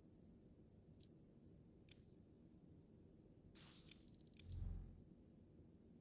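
Short electronic menu sounds click and swoosh several times.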